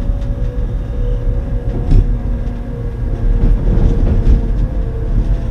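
Wheels clatter over rail joints and points.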